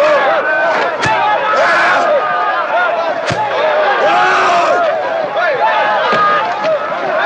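Blows thud against a body.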